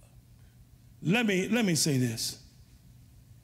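A middle-aged man speaks with emphasis through a microphone in an echoing room.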